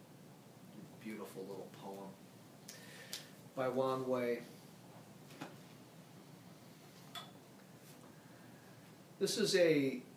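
A middle-aged man speaks calmly nearby in short phrases.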